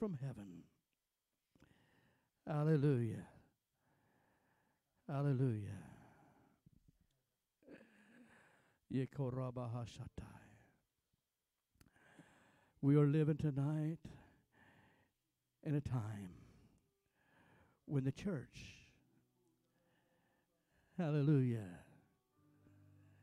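A man preaches into a microphone in loud, emphatic bursts with pauses, echoing through a hall.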